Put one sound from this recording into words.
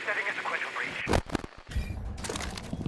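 Electronic static hisses and crackles briefly.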